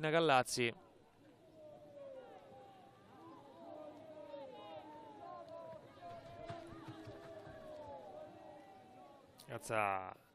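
Young women call out to each other across an open field.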